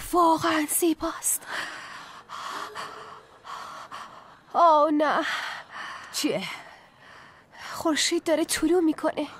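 A young woman speaks urgently nearby.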